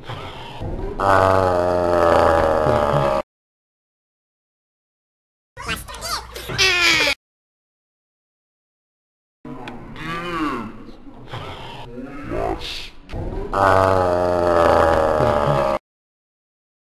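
A young man shouts loudly close by.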